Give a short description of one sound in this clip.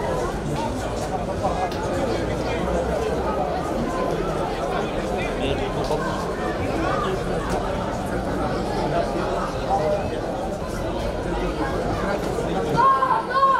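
Men call out and talk across an open field at a distance.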